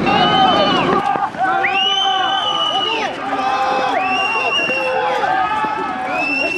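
Men shout loudly while running across open ground.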